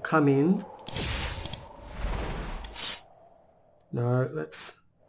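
A magic spell shimmers and chimes as it is cast.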